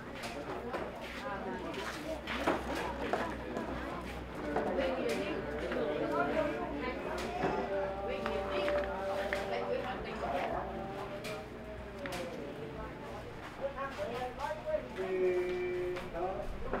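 A crowd of men and women murmur and talk close by.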